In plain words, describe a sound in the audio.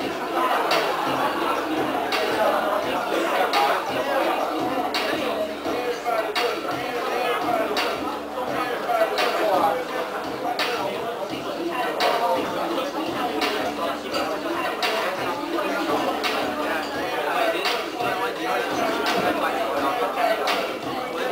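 Upbeat dance music with a steady beat plays loudly through a loudspeaker in a room.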